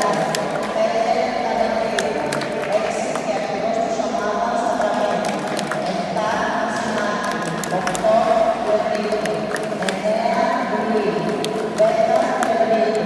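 Girls cheer and shout together in a large echoing hall.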